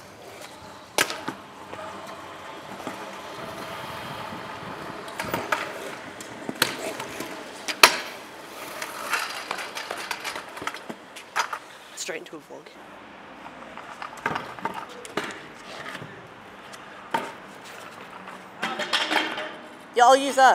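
A scooter deck clacks sharply against the pavement.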